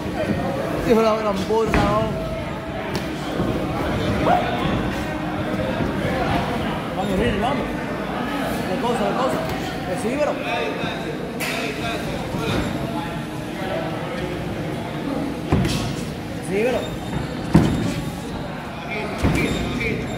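A crowd of people talk and shout.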